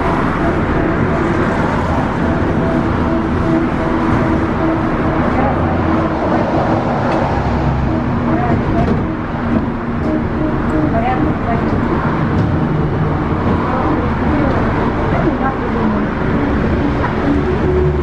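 Cars pass by on the road outside.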